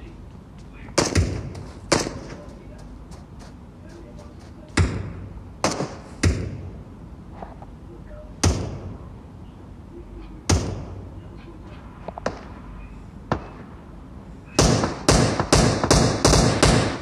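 Gunshots ring out in short bursts, ending in a rapid volley.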